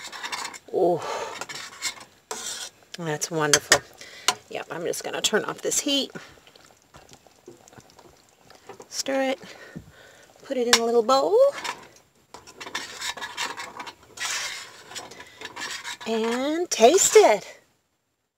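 A spoon stirs thick soup and scrapes against a metal pot.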